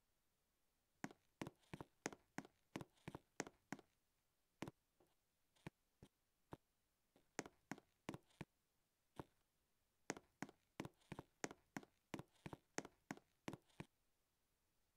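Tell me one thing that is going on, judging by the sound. Footsteps tap quickly and evenly on a hard floor.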